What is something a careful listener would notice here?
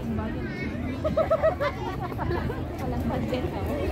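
Children call out while playing.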